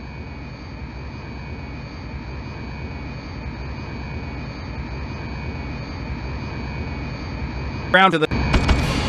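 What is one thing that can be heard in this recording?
A jet engine whines steadily at idle.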